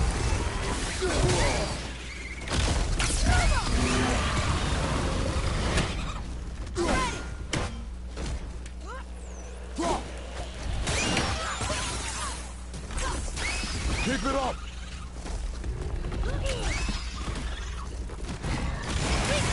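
A man grunts with effort while fighting.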